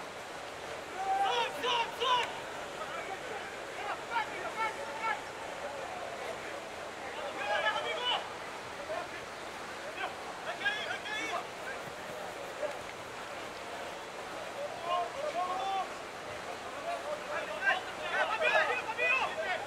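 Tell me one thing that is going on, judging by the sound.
Rugby players shout to each other across an open field.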